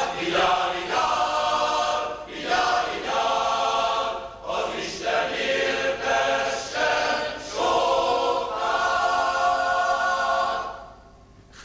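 A large male choir sings together with power.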